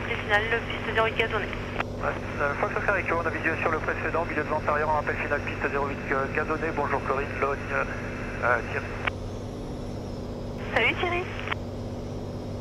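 A man talks calmly over a headset intercom.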